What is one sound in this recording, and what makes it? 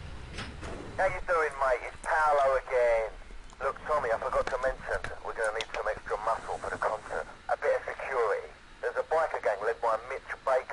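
A man talks with animation over a phone.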